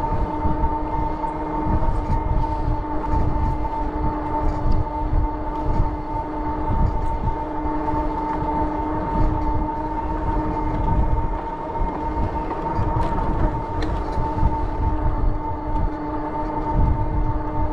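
Wind rumbles and buffets against the microphone while riding outdoors.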